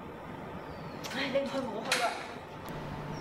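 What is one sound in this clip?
A young woman answers sharply close by.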